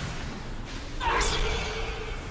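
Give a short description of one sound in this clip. A magical whoosh sweeps upward.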